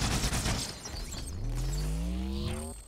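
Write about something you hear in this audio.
A deep electric hum rises in pitch.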